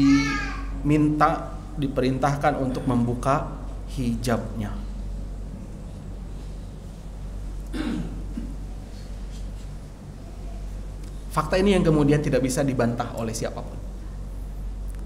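A man speaks calmly into a microphone, pausing now and then.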